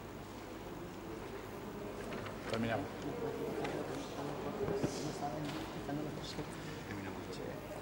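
A young woman reads out through a microphone in an echoing hall.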